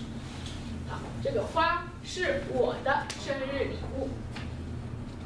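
A young woman speaks clearly in a room, a little distant.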